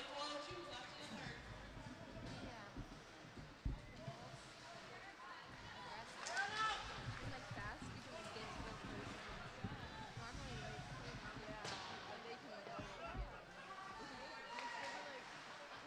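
A crowd of spectators chatters and cheers in an echoing rink.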